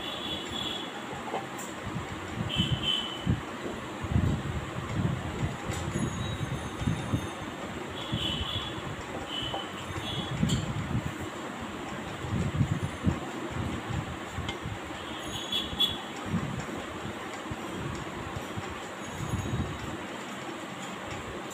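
Paper rustles and crinkles as hands handle it up close.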